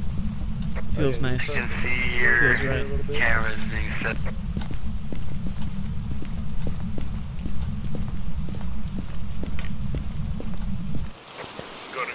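Footsteps thud on a floor.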